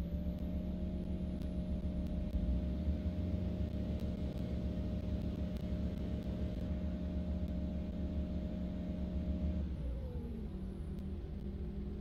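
A bus engine hums steadily and then drops in pitch as the bus slows.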